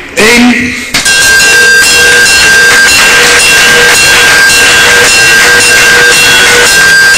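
A crowd applauds and claps steadily.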